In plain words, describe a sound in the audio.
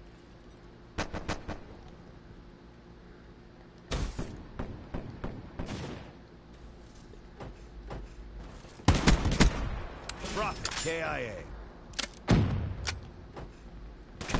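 Rapid gunshots ring out in sharp bursts.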